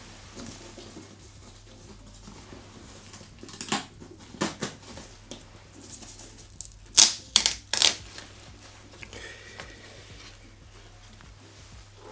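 Paper rustles and crinkles as it is unfolded.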